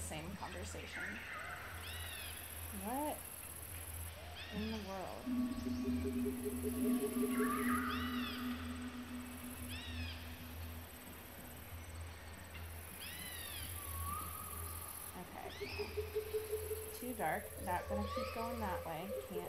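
Soft electronic game music plays with bright chiming notes.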